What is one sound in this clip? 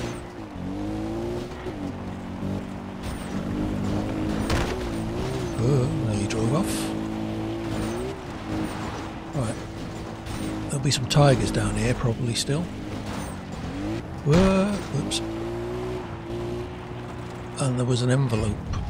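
A middle-aged man talks into a close microphone.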